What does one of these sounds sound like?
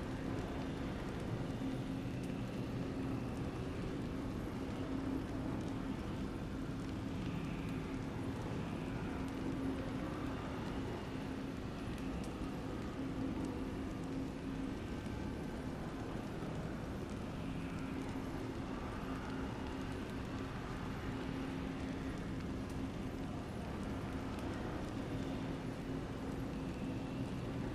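A deep, shimmering hum drones steadily and swells in slow pulses.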